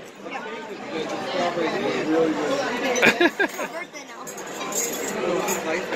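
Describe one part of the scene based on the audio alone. A fork clinks on a plate.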